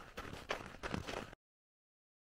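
Footsteps crunch on packed snow.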